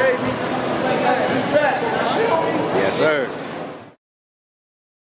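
A middle-aged man talks cheerfully close by in a large echoing hall.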